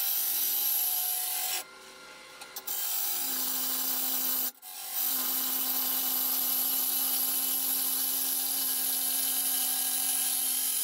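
A lathe hums steadily.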